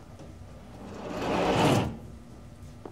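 A glass door slides shut with a whoosh.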